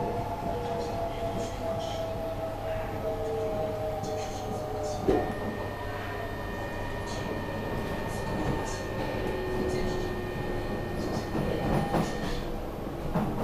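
Train wheels squeal and whine on the rails.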